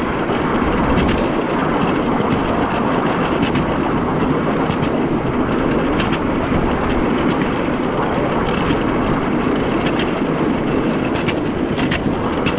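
Wheels click over rail joints at regular intervals.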